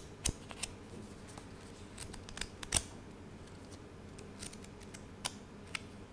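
Paper cards rustle and flick between fingers.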